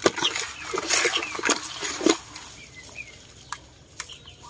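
Wet fish slap and rustle in a plastic basin.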